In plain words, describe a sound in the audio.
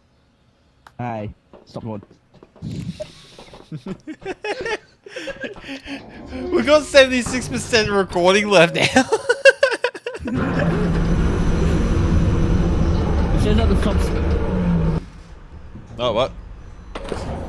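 A young man talks and laughs close to a microphone.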